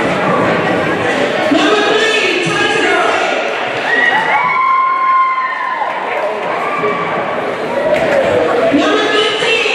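A crowd of teenage girls and boys chatter and cheer loudly in a large echoing hall.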